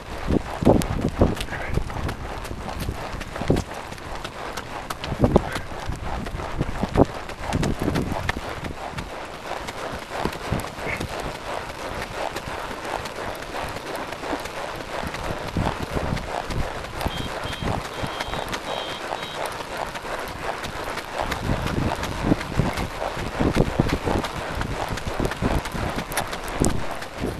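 A horse's hooves thud steadily on a dirt trail.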